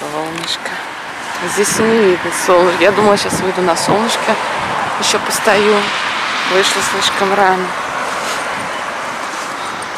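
Traffic hums steadily in the distance outdoors.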